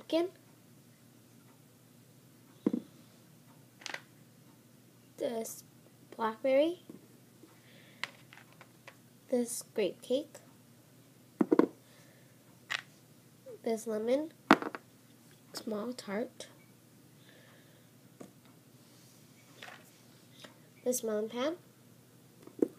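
Small clay figures tap and click as they are set down on a tabletop.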